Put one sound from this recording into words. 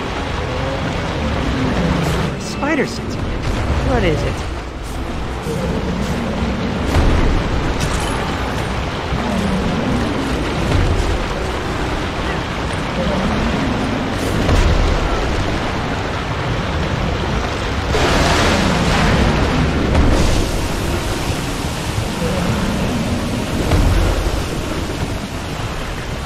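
Loose rubble swirls and clatters with a constant rumble.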